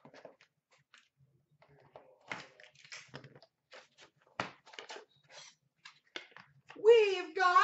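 A cardboard box scrapes and rustles as hands open it.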